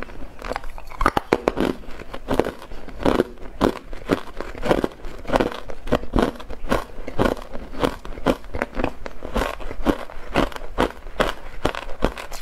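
A young woman crunches ice close to a microphone.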